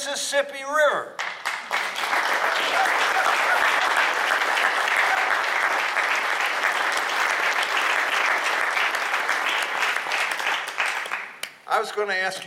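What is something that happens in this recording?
Hands clap rapidly.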